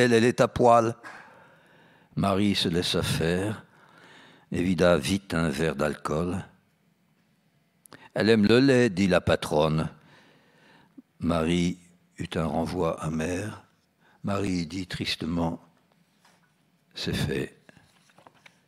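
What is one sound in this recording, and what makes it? An elderly man reads aloud calmly into a microphone.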